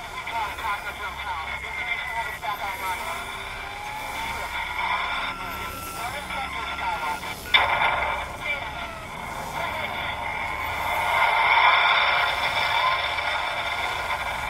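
A hovering drone hums steadily while scanning with a buzzing beam.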